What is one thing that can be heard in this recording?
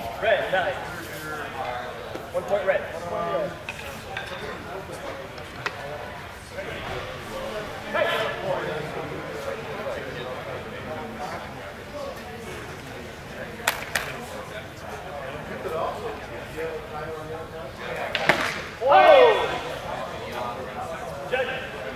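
Men talk at a distance in a large echoing hall.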